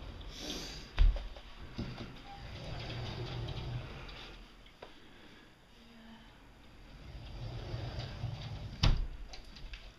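A cabinet door bumps open with a knock.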